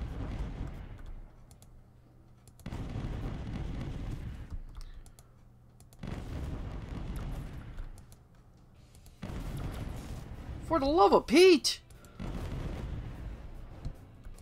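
Spaceship guns fire in rapid bursts.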